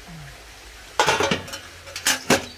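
A metal lid clatters against a metal serving tray.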